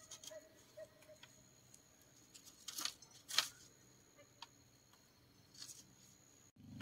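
Bamboo sticks knock and clatter against each other.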